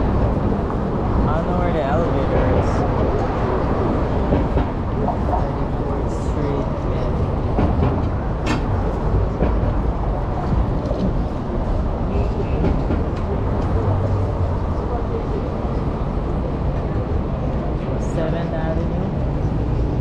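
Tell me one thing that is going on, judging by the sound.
Passersby talk nearby in a busy street.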